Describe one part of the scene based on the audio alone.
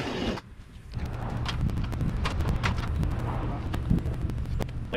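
A man climbs a metal ladder, the rungs clanking under his feet.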